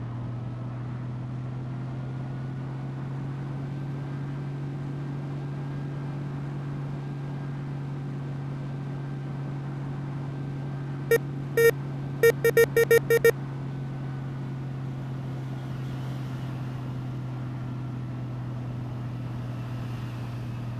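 A bus engine hums steadily at speed.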